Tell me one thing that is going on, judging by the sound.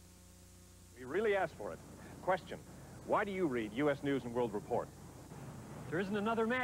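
A man speaks clearly and with animation, close to a microphone.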